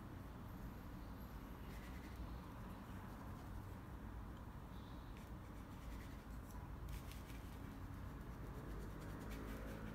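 A brush softly scrapes across a canvas.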